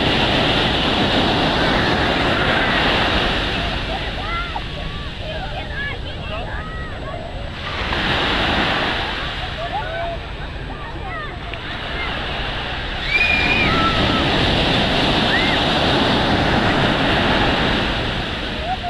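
Waves break and wash onto the shore close by.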